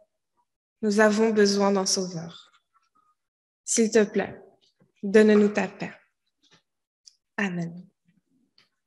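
A young girl speaks clearly and loudly.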